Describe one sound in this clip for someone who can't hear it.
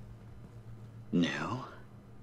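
A man answers briefly.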